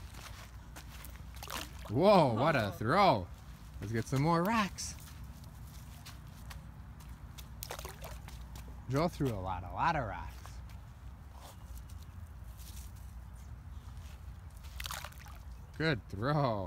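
A small rock plops into still water.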